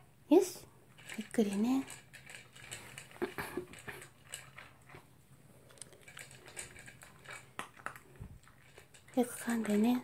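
A small dog crunches dry kibble and nudges a plastic bowl.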